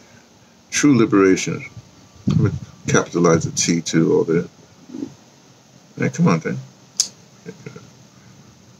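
An elderly man speaks calmly and close by, reading out in bursts.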